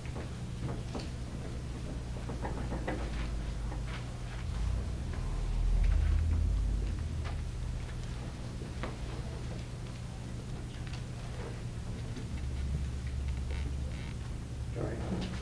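A marker squeaks against a whiteboard.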